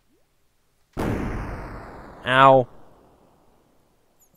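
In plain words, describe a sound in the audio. A fiery blast roars and rumbles away.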